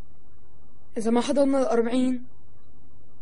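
A teenage boy speaks briefly in reply.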